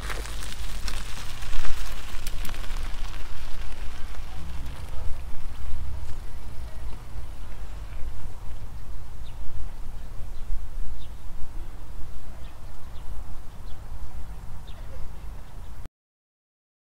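Wind rumbles steadily against the microphone outdoors.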